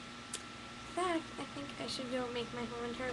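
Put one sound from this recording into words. A girl speaks close by, in a lively voice.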